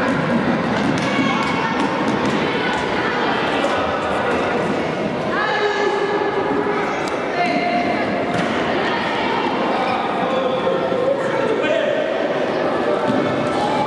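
A ball thuds when kicked.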